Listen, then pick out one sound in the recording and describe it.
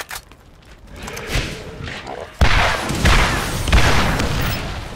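A heavy rifle fires loud booming shots.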